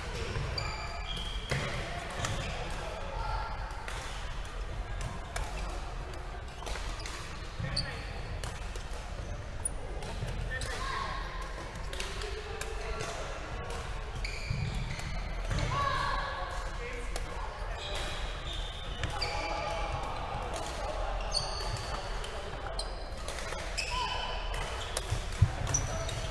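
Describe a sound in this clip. Rackets smack a shuttlecock back and forth in a large echoing hall.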